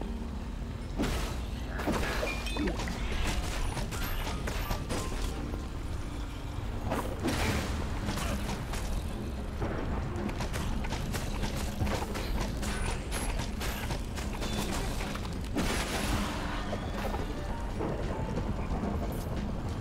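Game sound effects of hits and blasts go off now and then.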